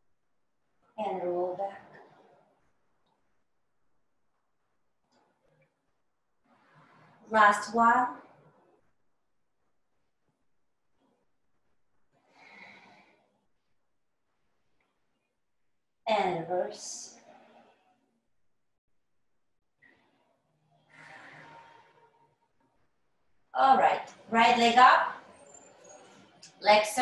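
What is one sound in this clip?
A middle-aged woman speaks calmly in short phrases through an online call.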